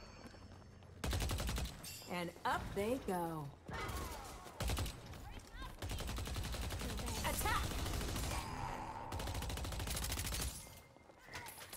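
Gunshots and blasts from a video game crackle loudly.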